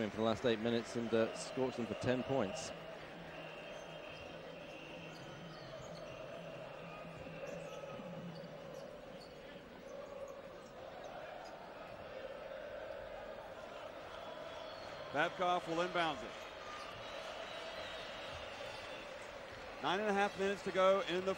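A crowd murmurs steadily in a large echoing arena.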